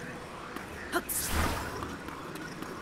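A magical whoosh bursts and fades.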